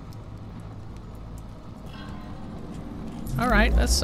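A torch flame burns with a soft crackle.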